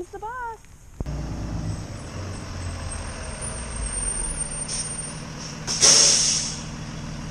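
A school bus engine rumbles as the bus pulls up.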